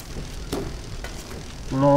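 Electric sparks crackle and fizz.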